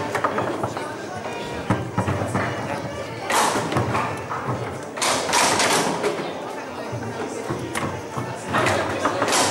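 A foosball ball clacks against plastic players and the table walls.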